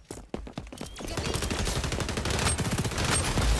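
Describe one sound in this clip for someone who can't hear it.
An automatic gun fires in a rapid, loud burst.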